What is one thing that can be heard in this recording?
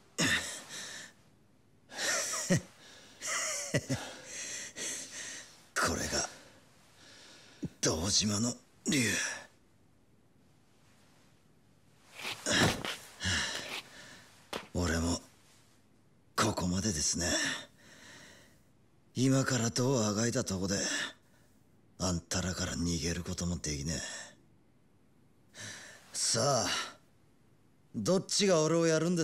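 A young man speaks hoarsely and haltingly, close by.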